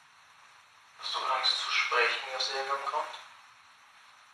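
A young woman speaks briefly close by.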